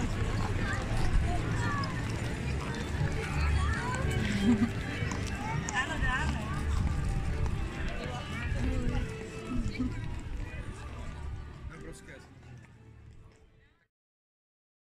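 A crowd chatters nearby outdoors.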